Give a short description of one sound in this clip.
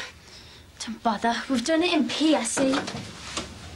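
A teenage girl speaks brightly nearby.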